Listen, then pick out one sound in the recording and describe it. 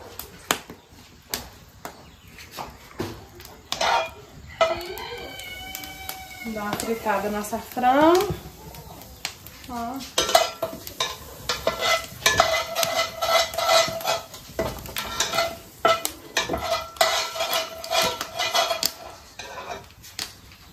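A wood fire crackles.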